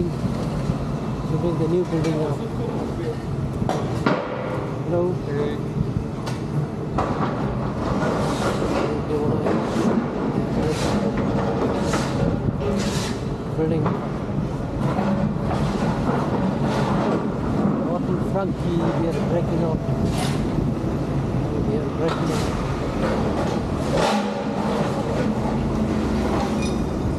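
A demolition excavator rumbles and grinds steadily nearby.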